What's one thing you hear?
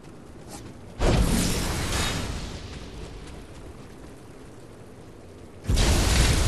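Loud magical blasts whoosh and boom in a fight.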